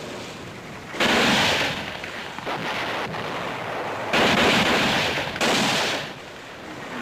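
Gunshots crack in bursts.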